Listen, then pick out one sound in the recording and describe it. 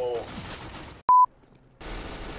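A short, high, steady test tone beeps.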